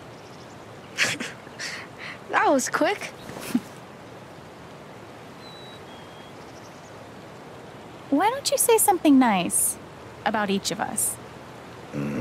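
A young woman speaks cheerfully.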